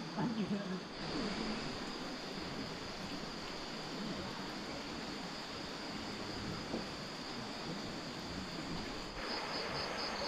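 Water trickles gently in a small stream.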